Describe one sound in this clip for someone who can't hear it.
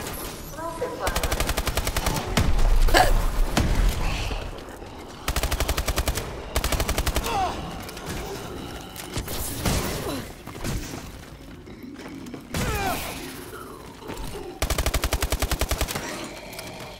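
A rapid-fire gun shoots in quick, loud bursts.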